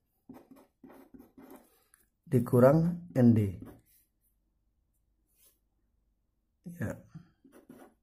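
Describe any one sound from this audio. A marker scratches faintly on paper.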